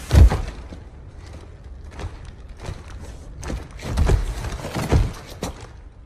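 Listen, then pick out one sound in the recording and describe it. Heavy boots step slowly on a hard floor.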